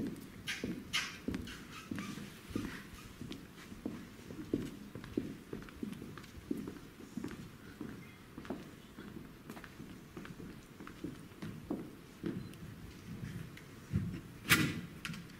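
A man talks in a large echoing room.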